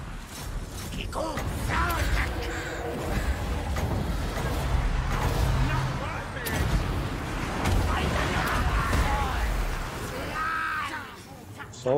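Magic blasts and battle noise rumble and crash.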